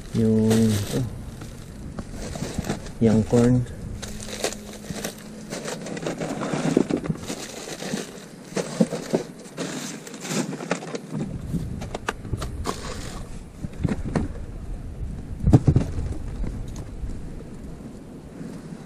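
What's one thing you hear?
Plastic bags rustle and crinkle as gloved hands dig through them.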